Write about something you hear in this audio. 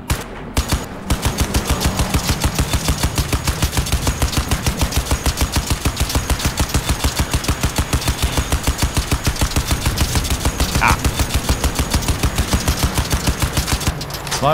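A machine gun fires rapid, steady bursts.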